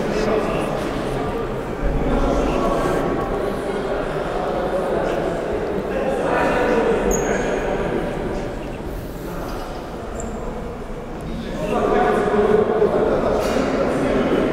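Players shout to each other across a large echoing hall.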